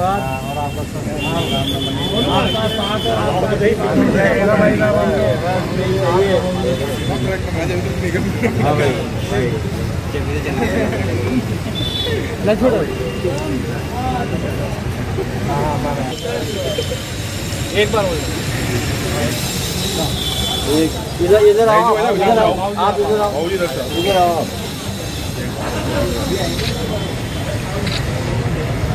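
A crowd of men chatters and talks outdoors.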